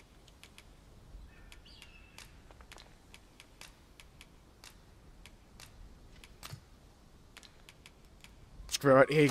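Short soft menu clicks tick again and again.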